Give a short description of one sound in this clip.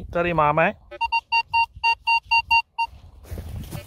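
A metal detector beeps in quick, even pulses.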